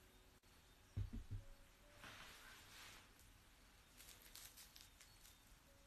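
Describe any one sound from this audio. Book pages rustle as a woman handles a book.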